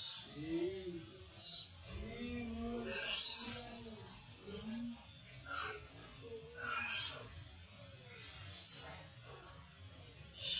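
A baby monkey squeals and cries up close.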